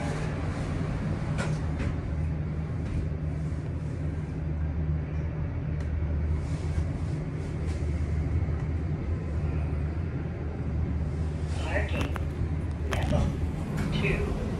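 An elevator motor hums steadily as the car moves.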